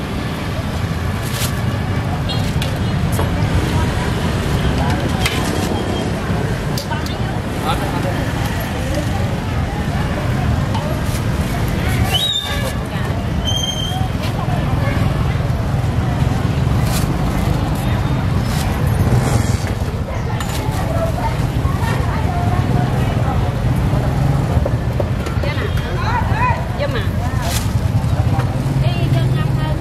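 Street traffic and motorbikes hum steadily outdoors.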